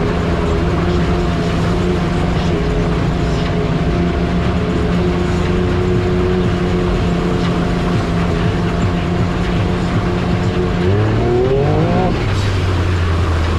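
Tyres crunch and rattle over a rocky track.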